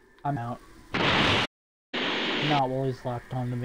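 An energy blast roars with a loud rushing burst.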